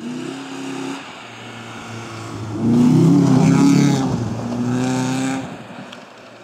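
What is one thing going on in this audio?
Tyres crunch and spray gravel on a dirt track.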